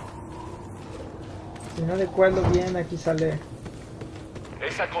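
Footsteps thud along a metal walkway.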